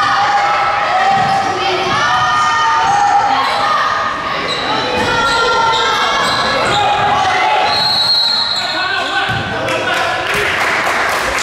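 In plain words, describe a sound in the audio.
Sneakers squeak sharply on a hard court in a large echoing gym.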